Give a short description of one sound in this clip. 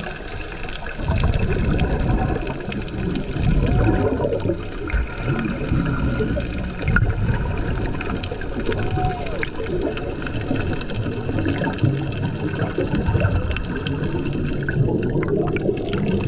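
Scuba bubbles gurgle and rumble underwater.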